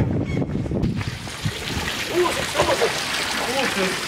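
Water splashes as a young man steps into a pool.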